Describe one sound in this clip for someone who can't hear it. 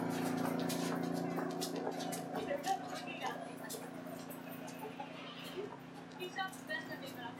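Shoes tap and scuff on a stone pavement.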